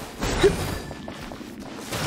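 A fiery burst explodes with a thump.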